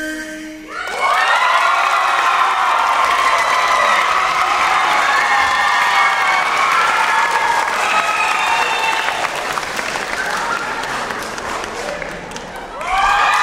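A crowd of young people cheers and screams loudly in a large hall.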